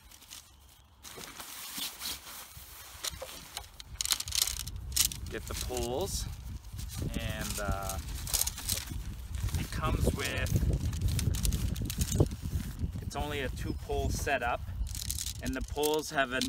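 Nylon fabric rustles and crinkles as it is handled.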